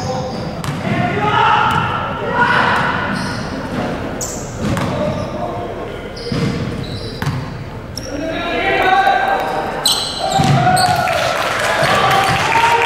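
Young men shout and call out to each other across an echoing hall.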